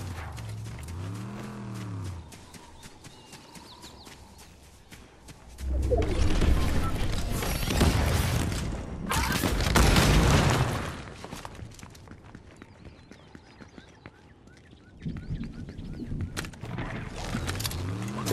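Footsteps patter quickly on ground and stone.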